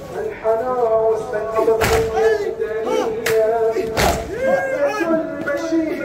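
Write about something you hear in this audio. A crowd of men chants loudly together outdoors.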